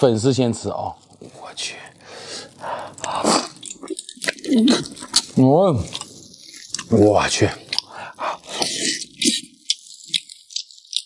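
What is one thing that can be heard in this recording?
A young man chews and slurps food noisily.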